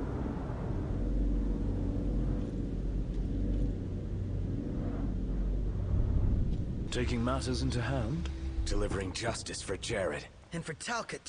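A car engine rumbles as the car drives along.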